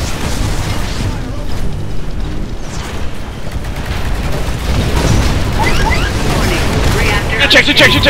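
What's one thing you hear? A cannon fires in rapid bursts.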